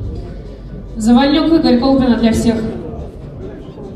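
A man announces loudly over a loudspeaker in an echoing hall.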